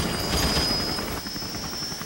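A helicopter's rotor thumps nearby.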